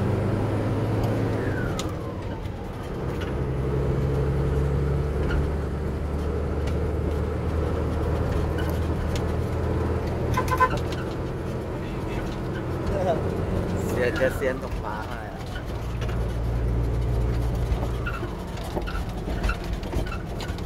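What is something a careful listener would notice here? The vehicle rattles and bumps over a rough road.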